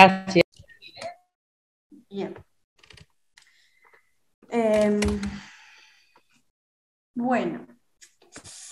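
A woman speaks calmly in short phrases through an online call.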